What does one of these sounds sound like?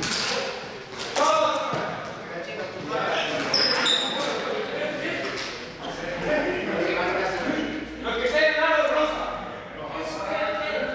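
Sneakers squeak and patter on a hard floor.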